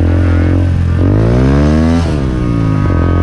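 A motorcycle engine revs up sharply and then drops back.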